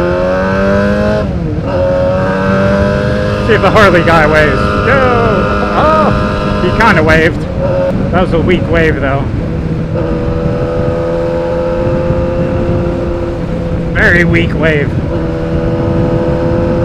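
A motorcycle engine hums steadily, its pitch dipping and rising as it shifts gears.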